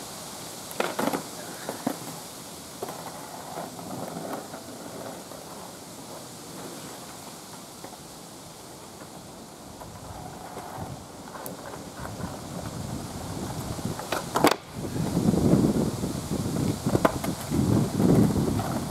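Skateboard wheels roll and rumble on asphalt.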